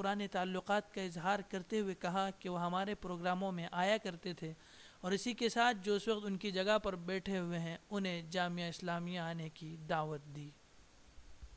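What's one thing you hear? A man speaks steadily and calmly, close by.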